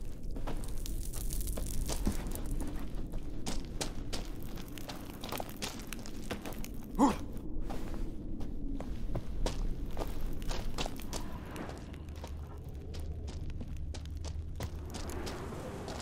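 Footsteps crunch on a rocky floor.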